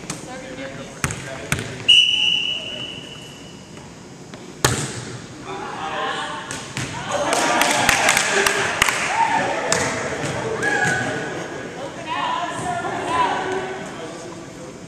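A volleyball is hit with sharp slaps in an echoing gym.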